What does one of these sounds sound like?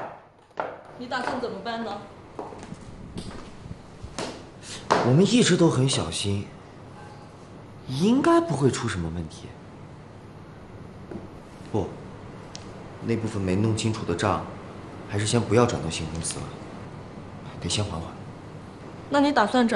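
A man speaks calmly and seriously close by.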